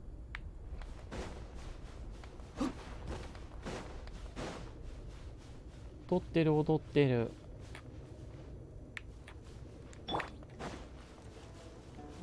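Footsteps run quickly over soft sand.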